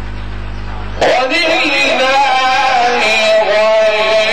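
A man recites loudly and melodiously through a microphone.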